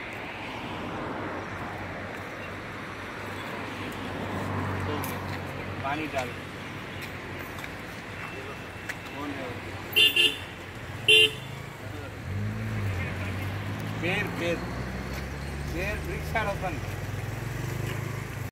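Several men talk casually nearby outdoors.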